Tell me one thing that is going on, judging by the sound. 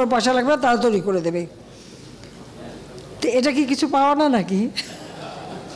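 An elderly woman speaks with animation into a microphone, close by.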